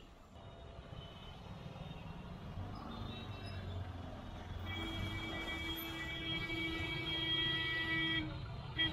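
Motorbike and car engines hum in nearby traffic.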